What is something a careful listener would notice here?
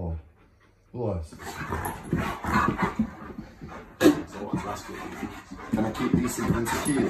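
Alaskan malamutes growl while play-fighting.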